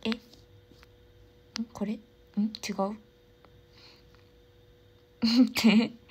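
A young woman speaks softly and casually, close to a microphone, in short bursts.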